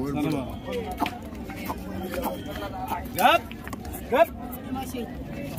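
A crowd of men chatters outdoors nearby.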